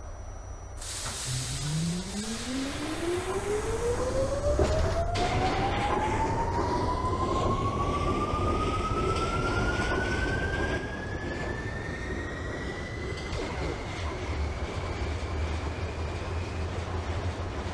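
A subway train's traction motors whine, rising in pitch as the train speeds up.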